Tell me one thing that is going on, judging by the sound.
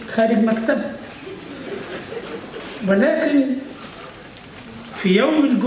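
An elderly man speaks slowly and thoughtfully into a microphone in a large echoing hall.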